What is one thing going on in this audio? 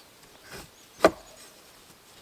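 A wooden pole thuds against a log.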